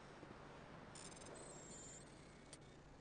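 Short electronic beeps chirp rapidly.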